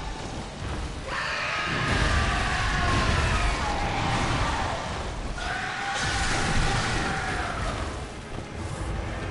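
Heavy blows thud and clash.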